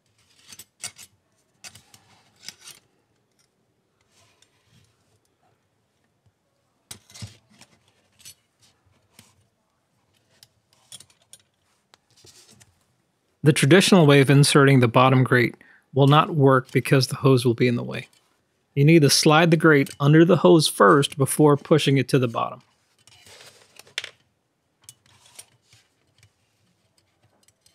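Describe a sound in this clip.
Thin metal parts clink and rattle as hands handle them.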